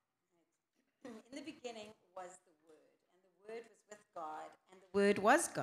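A woman speaks calmly into a handheld microphone.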